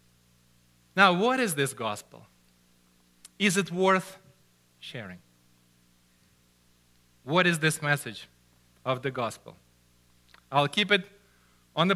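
A man speaks with animation into a headset microphone, pausing between phrases.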